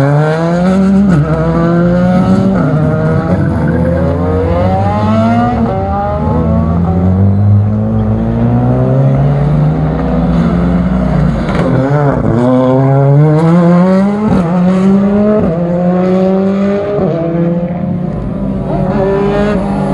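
Racing car engines roar loudly, revving up and down through the gears.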